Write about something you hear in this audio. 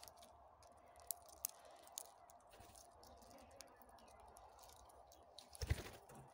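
Parrots chirp and squawk nearby.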